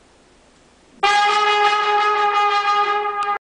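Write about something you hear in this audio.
A trumpet plays a held note.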